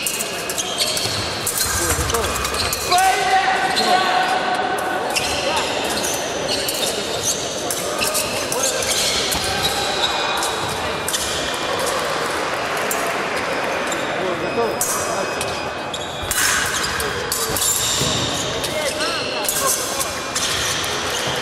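Metal blades clink and scrape against each other in an echoing hall.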